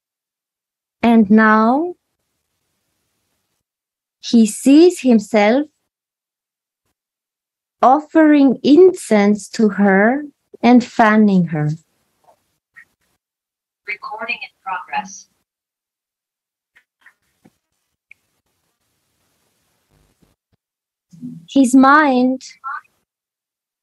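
A woman speaks calmly in short phrases.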